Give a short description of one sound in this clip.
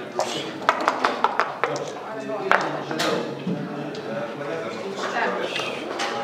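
Dice clatter onto a board.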